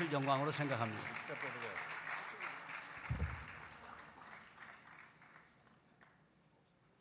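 An audience applauds loudly, then the applause fades away.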